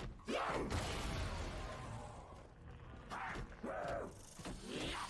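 A monster snarls and growls up close.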